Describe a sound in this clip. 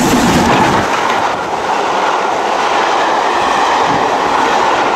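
Carriages rattle and clatter past on the rails.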